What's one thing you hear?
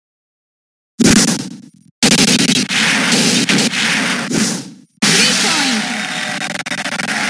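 A video game crowd cheers loudly in bursts.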